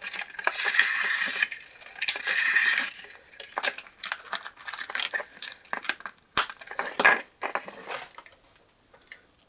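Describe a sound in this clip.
Thin plastic crinkles and clicks close by as it is handled.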